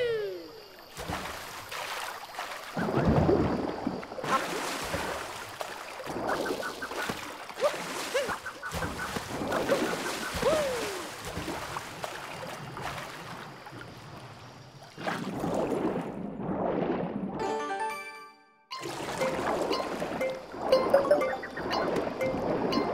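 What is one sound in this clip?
Water splashes and sloshes as a small figure swims.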